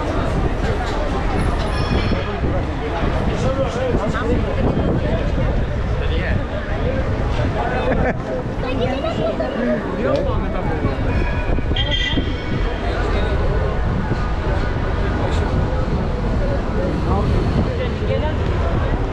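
A busy crowd chatters all around on a city street.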